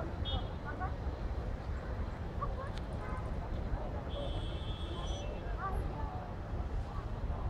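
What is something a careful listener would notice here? Distant traffic rumbles steadily.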